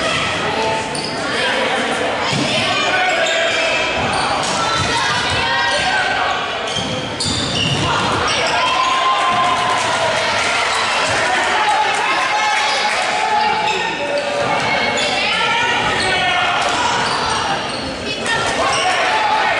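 Young women shout across an echoing gym.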